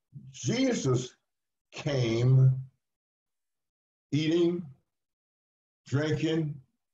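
An elderly man speaks calmly in short phrases, heard through an online call.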